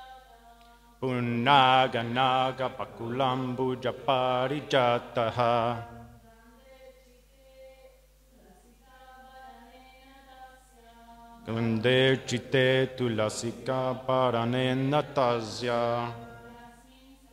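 A young man chants a melody loudly into a microphone, close by.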